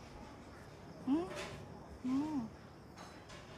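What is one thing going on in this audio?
A young woman speaks a few short words close by.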